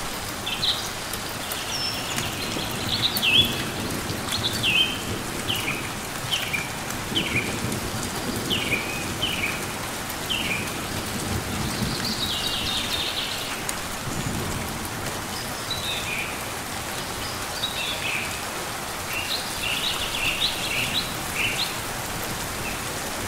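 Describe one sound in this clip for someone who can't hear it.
Rain patters steadily all around.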